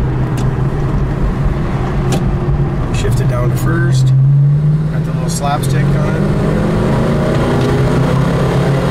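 Tyres rumble on a road.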